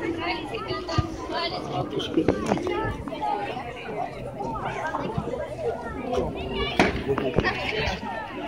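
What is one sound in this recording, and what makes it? A person claps hands.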